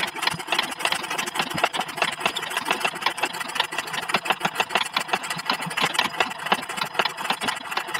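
Small metal parts click and scrape rapidly close by.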